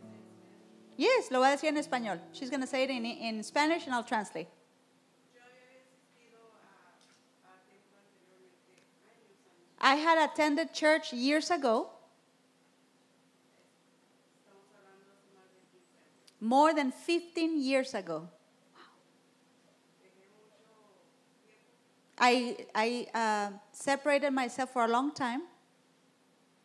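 A woman speaks into a microphone over loudspeakers in a large echoing room, in short bursts with pauses.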